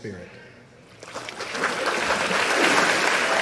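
People clap and cheer.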